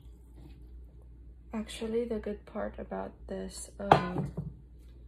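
A metal pot clanks as it is set down.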